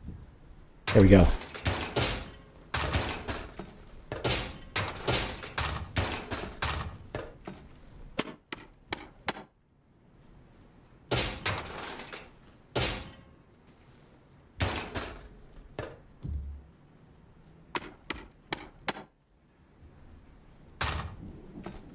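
Small metal scraps clink as they are picked up.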